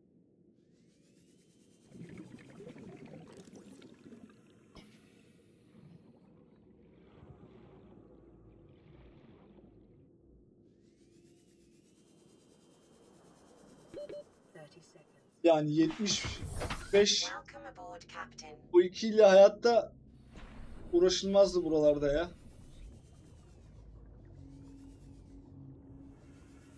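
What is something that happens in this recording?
A small underwater vehicle hums softly as it moves.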